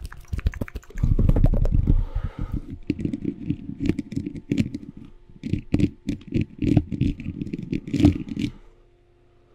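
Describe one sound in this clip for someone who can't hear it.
Hands rub against a microphone with a loud muffled rumble.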